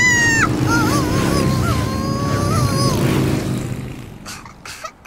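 A cartoon motorbike engine revs and putters.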